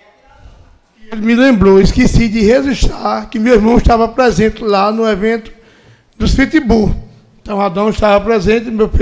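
A man speaks with animation into a microphone, close and loud.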